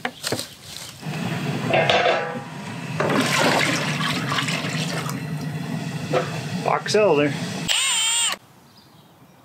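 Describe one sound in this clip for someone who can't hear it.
Liquid pours and splashes into a metal pot.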